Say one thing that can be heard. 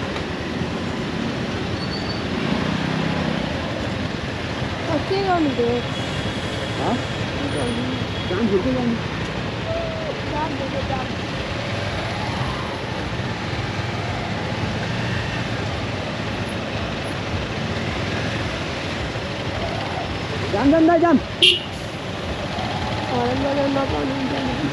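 Dense traffic rumbles all around outdoors.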